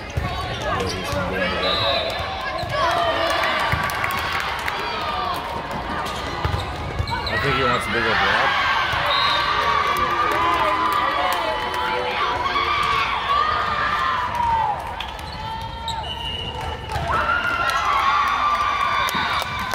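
A volleyball thumps off players' arms and hands.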